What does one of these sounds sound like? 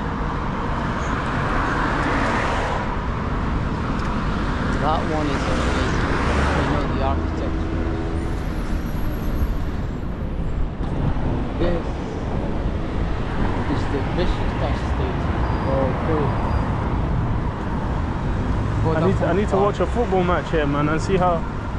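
Traffic rumbles and hisses past on a busy road outdoors.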